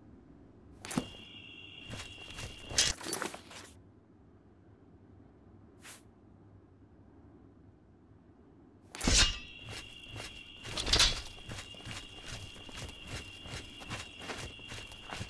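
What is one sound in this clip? Footsteps fall steadily on stone paving.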